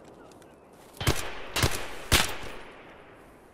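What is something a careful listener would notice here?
A rifle fires three loud shots that ring out.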